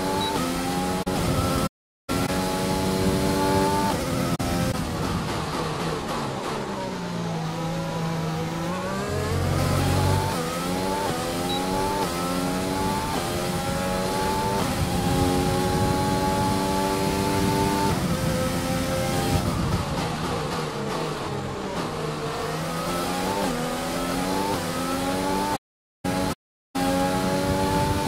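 A racing car engine screams at high revs, rising through the gears and dropping sharply when braking for corners.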